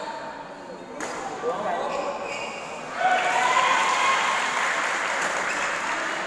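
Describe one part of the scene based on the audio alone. A badminton racket strikes a shuttlecock with sharp pops.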